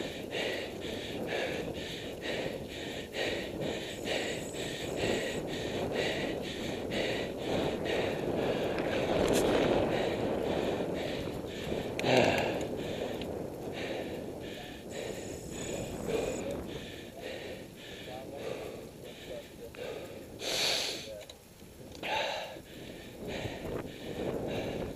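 A bicycle's tyres hum on a paved road.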